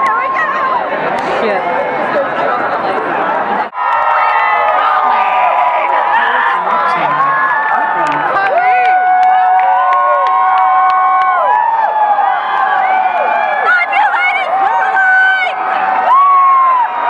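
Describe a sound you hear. A large crowd screams and cheers loudly in a big echoing arena.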